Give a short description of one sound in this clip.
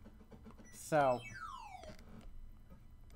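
An electronic game tone drops quickly in pitch.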